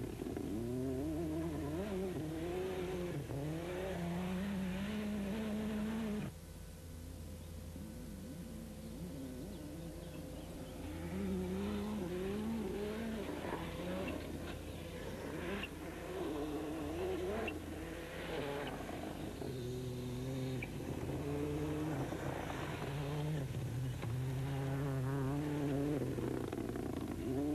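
Gravel sprays and crunches under the tyres of a rally car.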